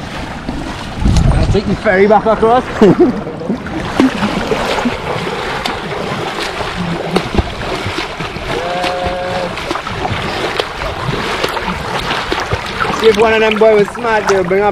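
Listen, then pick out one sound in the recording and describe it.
Water rushes and gurgles close by.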